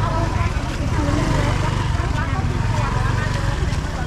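A motorbike engine idles close by.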